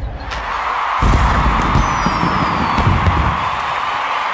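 Fireworks burst and boom.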